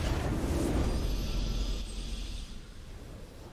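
A triumphant victory fanfare swells loudly and fades away.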